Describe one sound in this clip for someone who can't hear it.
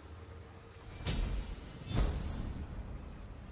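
A bright chime rings twice.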